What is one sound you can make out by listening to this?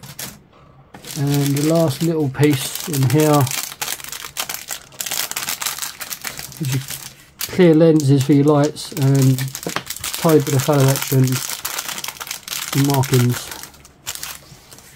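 A plastic bag crinkles and rustles as hands handle it.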